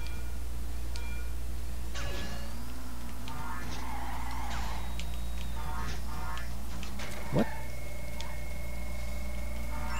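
A racing game's kart engine hums steadily.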